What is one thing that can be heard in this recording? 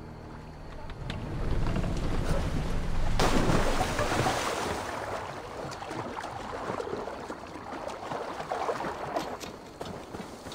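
Water splashes loudly as someone jumps in and swims.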